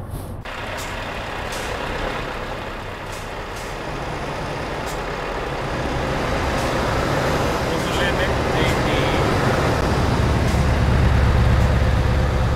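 A truck engine rumbles steadily and grows louder.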